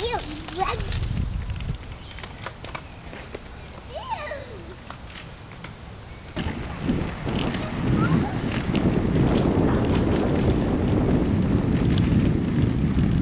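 A child's bicycle rolls over a dirt path.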